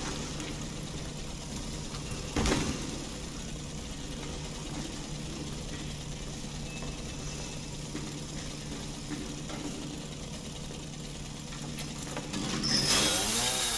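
A chainsaw engine idles with a low, steady rumble.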